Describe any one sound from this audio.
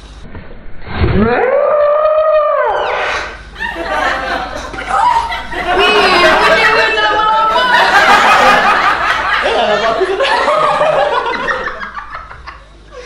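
A young woman screams and laughs excitedly close by.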